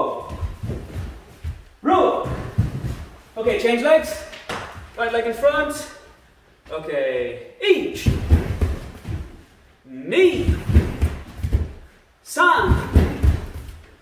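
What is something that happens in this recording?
Bare feet thud and shuffle on a wooden floor.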